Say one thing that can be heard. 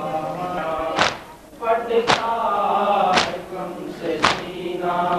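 Men beat their chests in a steady rhythm with loud slaps.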